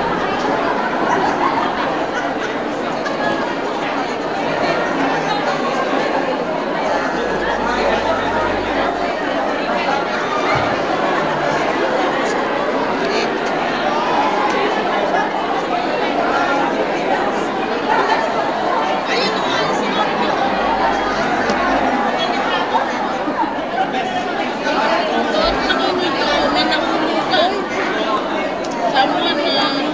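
A crowd of people chatters all around in a large, echoing room.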